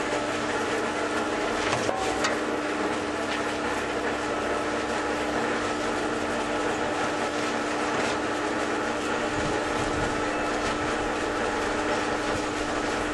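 A shovel scrapes and scoops sand.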